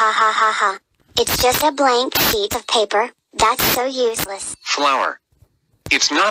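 A cartoon man speaks with animation through a recording.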